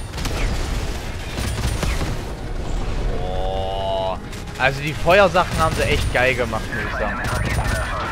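A heavy machine gun fires in rapid bursts.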